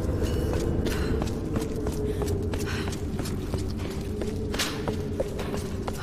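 Footsteps walk steadily on hard stone.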